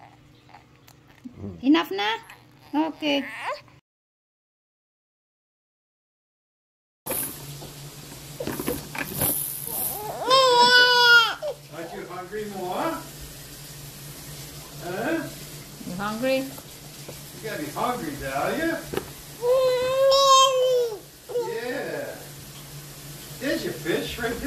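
An infant babbles and squeals close by.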